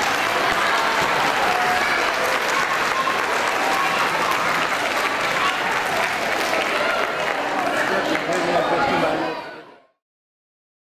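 A large crowd murmurs and chatters in an echoing hall.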